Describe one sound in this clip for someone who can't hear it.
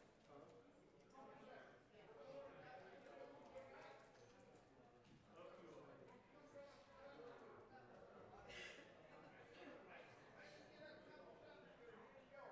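Men and women chat quietly among themselves in an echoing hall.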